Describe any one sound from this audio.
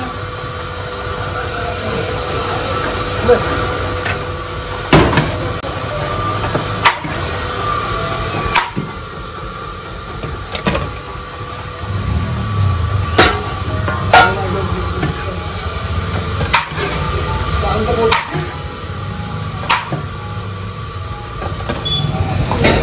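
A metal scoop scrapes and knocks against a large metal pot.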